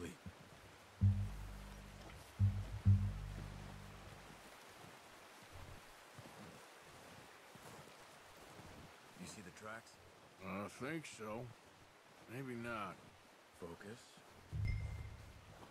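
A man speaks calmly in a low, deep voice.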